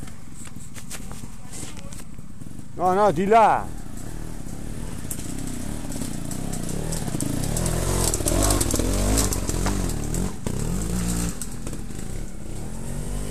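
Dirt bike engines rev and sputter nearby on a steep slope.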